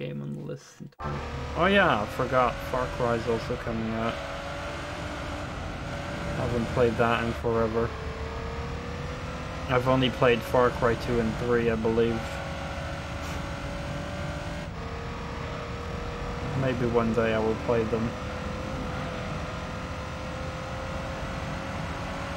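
A racing car engine drones steadily and slowly rises in pitch.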